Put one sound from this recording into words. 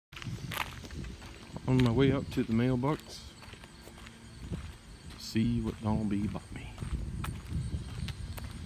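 Footsteps scuff along a paved path outdoors.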